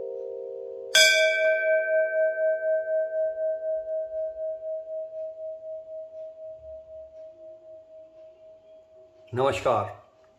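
A large brass bell rings once with a pulsing hum that slowly fades.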